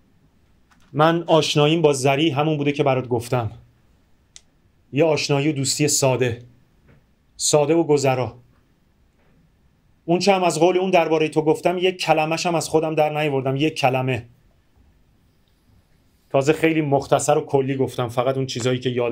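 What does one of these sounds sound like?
A man reads aloud slowly and expressively, close to a microphone, in short bursts with pauses.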